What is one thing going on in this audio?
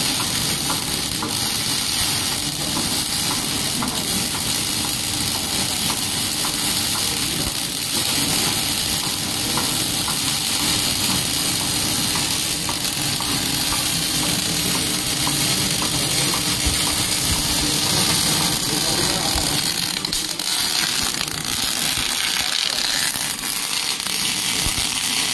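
A welding torch crackles and sizzles steadily close by.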